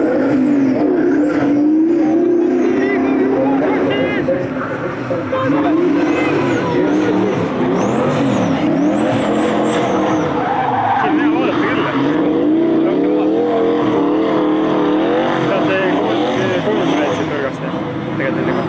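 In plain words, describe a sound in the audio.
Tyres squeal on wet tarmac.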